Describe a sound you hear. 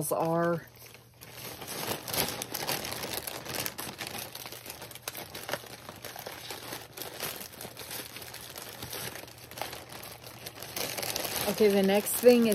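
A plastic mailer bag rustles and crinkles.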